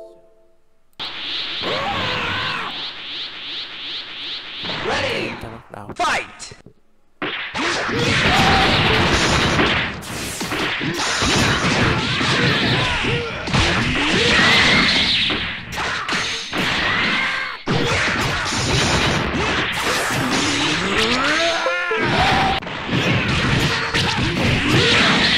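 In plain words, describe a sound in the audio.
Energy blasts roar and crackle.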